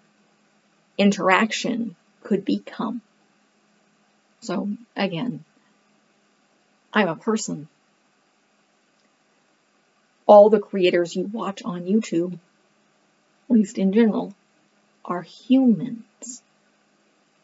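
A woman talks calmly and with pauses, close to a microphone.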